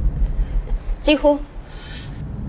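A young woman speaks briefly and quietly.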